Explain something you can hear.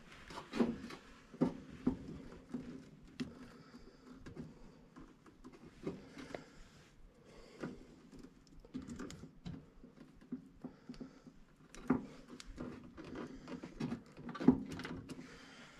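Wires rustle and click as hands handle them.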